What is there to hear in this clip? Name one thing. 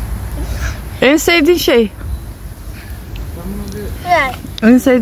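A young girl speaks close by in a high voice.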